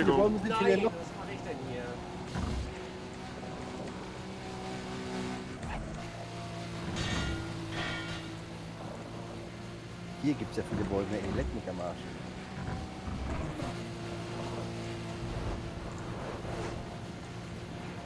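A man talks into a close microphone with animation.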